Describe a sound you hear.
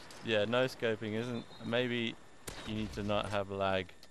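A magazine clicks into a rifle.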